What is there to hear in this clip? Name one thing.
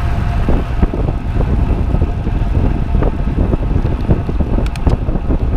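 Bicycle tyres hum on smooth road.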